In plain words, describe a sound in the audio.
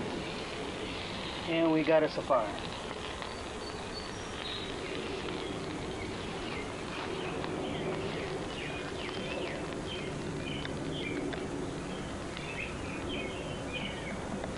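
Burning dry grass crackles and pops.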